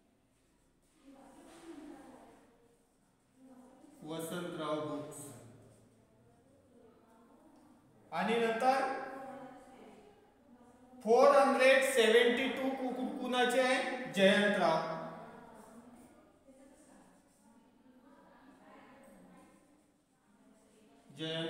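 A man speaks calmly, explaining, close by.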